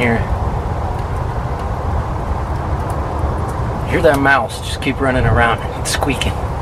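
A wood fire crackles softly in a stove.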